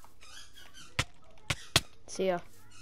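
Sharp hits land in quick succession.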